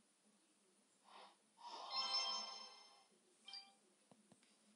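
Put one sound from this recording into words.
A short cheerful game jingle chimes.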